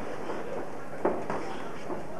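A boxing glove thuds against a boxer's body.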